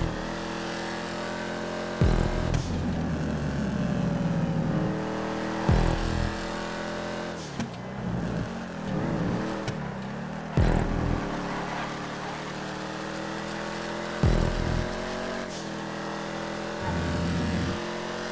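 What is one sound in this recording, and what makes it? A car engine roars steadily and shifts up through the gears.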